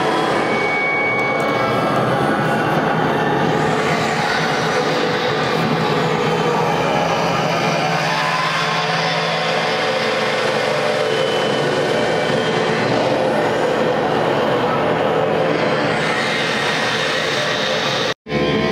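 Music plays from an electronic instrument through loudspeakers.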